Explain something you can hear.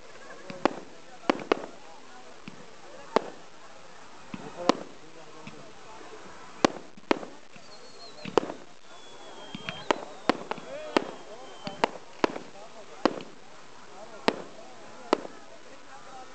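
Firework rockets whoosh and crackle as they rise.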